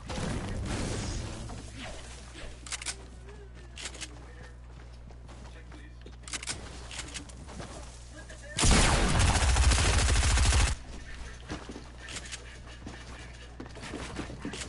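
Building pieces snap into place with quick wooden clunks.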